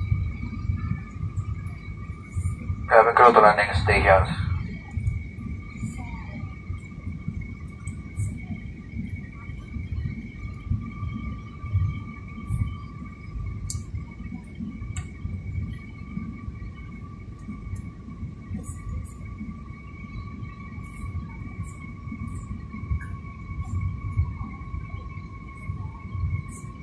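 A jet engine roars steadily through the cabin wall.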